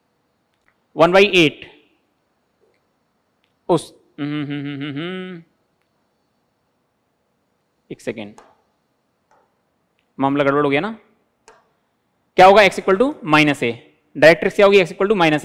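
A man explains calmly and clearly into a close microphone, in short bursts with pauses.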